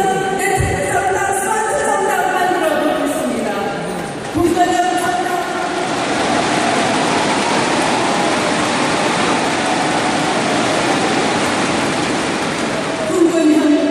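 A middle-aged woman speaks forcefully into a microphone, echoing through a large hall.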